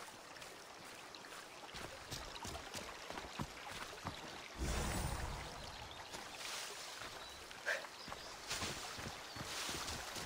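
Dry bushes rustle as someone pushes through them.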